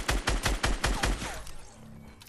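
Rapid gunshots fire in quick succession.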